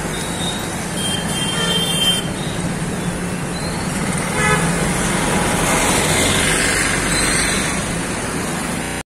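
Motorbikes and scooters ride past on a busy street.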